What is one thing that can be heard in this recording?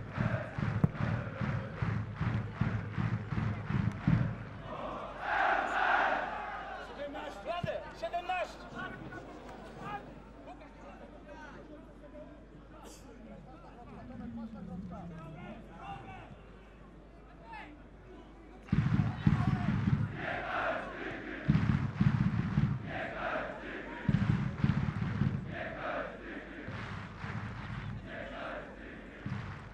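A large stadium crowd chants and cheers loudly outdoors.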